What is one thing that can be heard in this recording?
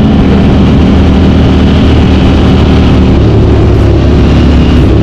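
A motorcycle engine drones loudly up close as the bike speeds along.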